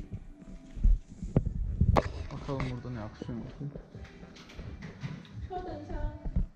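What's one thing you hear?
A woman talks on a phone nearby.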